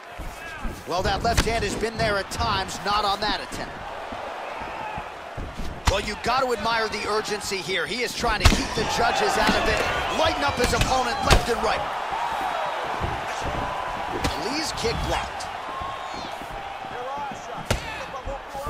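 Punches and kicks land on a body with sharp thuds.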